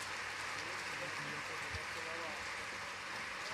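A man speaks briefly away from a microphone.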